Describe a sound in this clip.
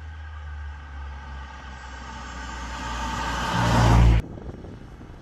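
A car engine hums, growing louder as the car approaches.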